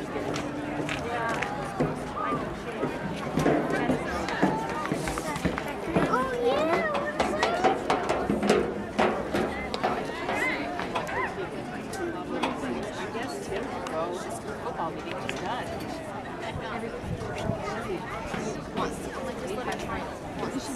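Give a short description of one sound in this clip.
A crowd of young people chatters outdoors at a distance.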